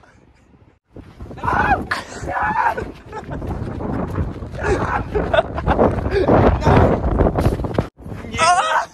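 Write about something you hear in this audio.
A person runs across sandy ground with quick footsteps.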